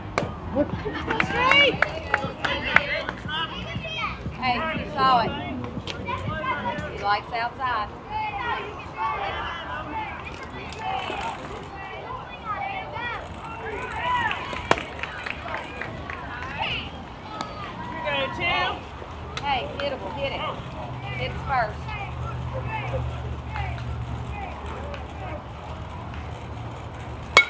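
Children and adults shout and cheer outdoors.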